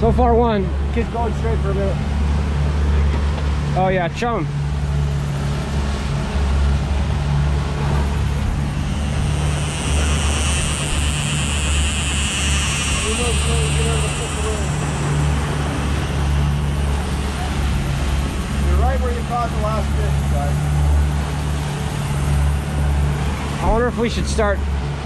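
A man talks loudly nearby.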